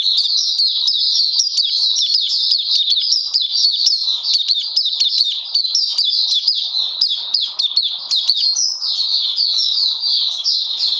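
A small bird sings a fast, unbroken, high twittering song close by.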